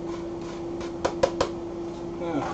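A metal grater knocks against a pot several times.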